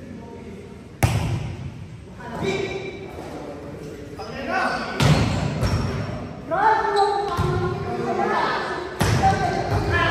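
A volleyball smacks against hands and arms.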